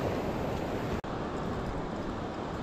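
Wind blows across the beach.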